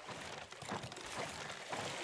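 A spear strikes a shark with a thud.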